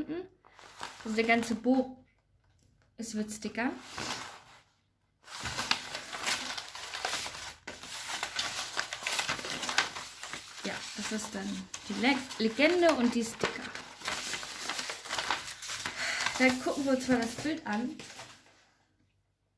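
Paper sheets rustle and crinkle as they are leafed through close by.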